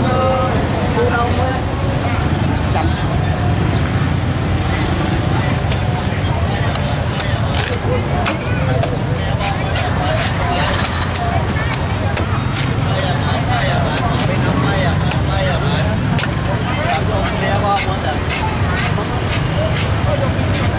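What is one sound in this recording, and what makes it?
A cleaver chops into a coconut with sharp, repeated knocks.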